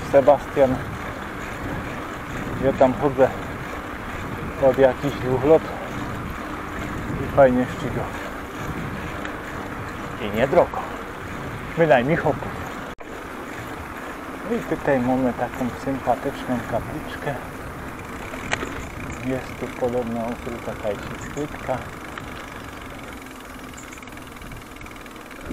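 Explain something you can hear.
Bicycle tyres hum steadily on a paved road.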